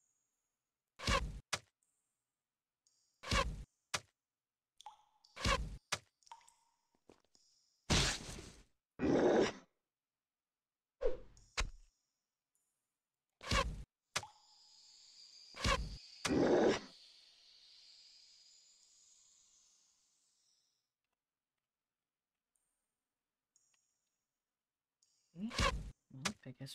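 Sharp blows and thuds land again and again in a fight.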